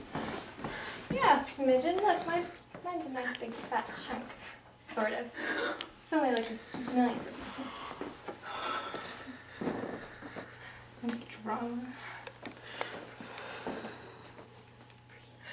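A second young woman talks close by.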